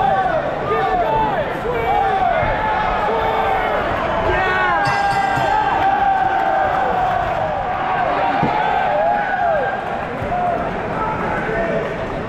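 A crowd cheers and whistles loudly all around.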